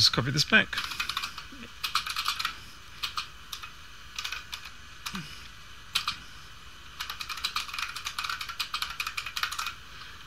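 Keys clatter on a keyboard in quick bursts of typing.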